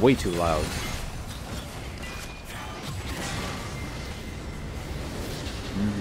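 Video game spells crackle and whoosh in rapid bursts.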